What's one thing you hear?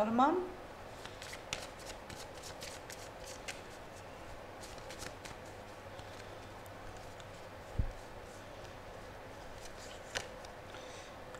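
Playing cards riffle and flick as they are shuffled by hand.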